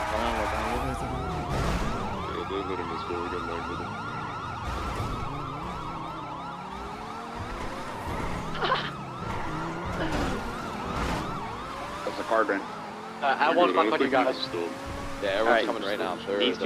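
A sports car engine revs hard and roars.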